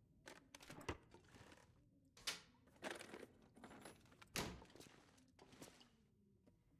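Footsteps tap on a hard tiled floor.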